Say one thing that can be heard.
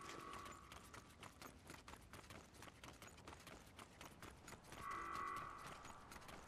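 Quick footsteps tap on wooden boards.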